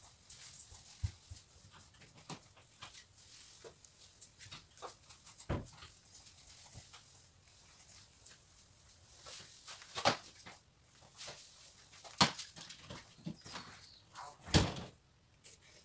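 A board knocks and taps against a tabletop as it is tilted.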